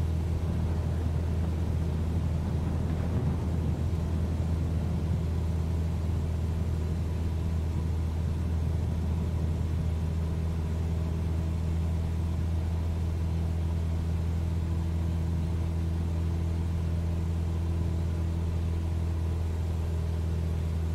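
A small propeller plane's engine drones steadily in flight.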